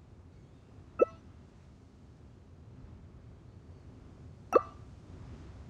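A short electronic chime sounds twice as menu items are picked.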